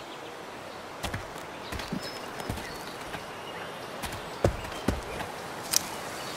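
Footsteps walk slowly over the ground.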